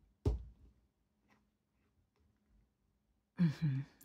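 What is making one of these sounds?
A card is set down on a wooden table.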